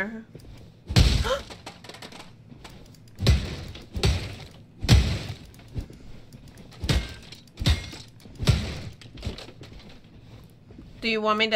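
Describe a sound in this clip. Heavy hammer blows thud and smash repeatedly.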